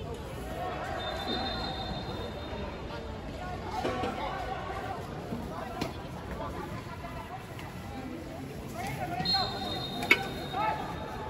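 A referee's whistle blows in short shrill bursts.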